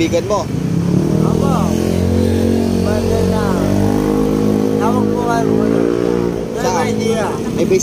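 A motorcycle engine hums as it passes nearby.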